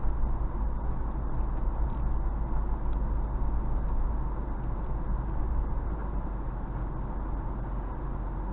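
A vehicle engine rumbles steadily as it drives slowly over rough dirt.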